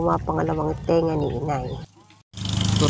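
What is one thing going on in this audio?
A woman speaks with animation close by.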